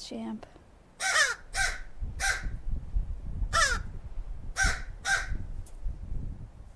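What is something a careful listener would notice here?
A crow caws loudly several times, close by.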